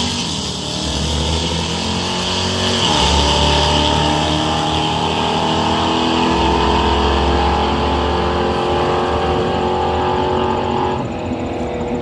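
A race car engine roars loudly as the car accelerates away down the track.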